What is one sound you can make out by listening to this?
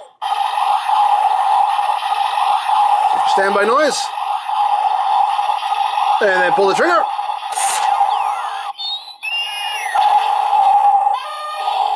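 A toy plays tinny electronic music and sound effects through a small speaker.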